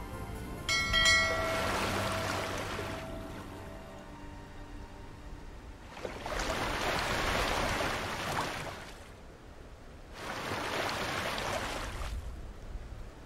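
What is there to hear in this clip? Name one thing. Waves wash and surge as a ship sails across the water.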